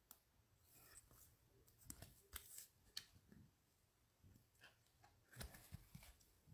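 Gloved hands tear and crinkle a foil wrapper.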